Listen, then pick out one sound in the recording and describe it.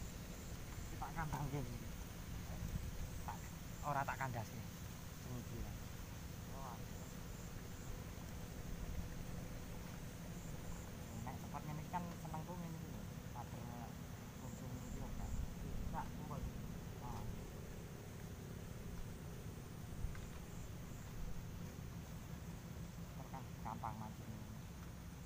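A young man talks casually, close by.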